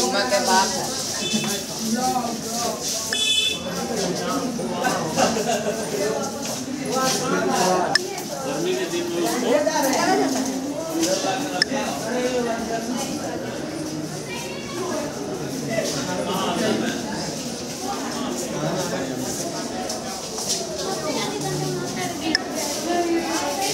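Adults and children chatter and talk nearby.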